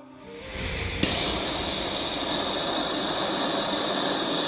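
A gas torch roars steadily with a hissing flame.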